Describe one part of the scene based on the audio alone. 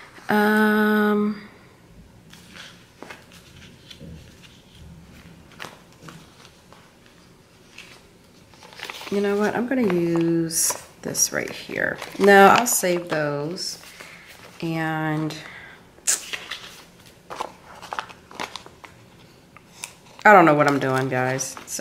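Sticker sheets rustle and crinkle as they are handled close by.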